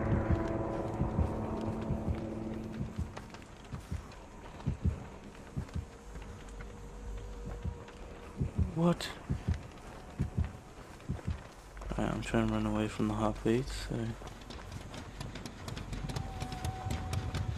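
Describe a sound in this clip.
Quick footsteps rustle through tall grass.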